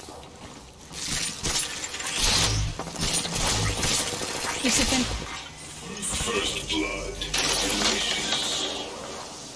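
A zipline cable whirs as it carries a rider along.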